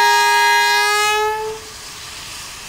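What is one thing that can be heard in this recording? A steam locomotive whistle blows loudly.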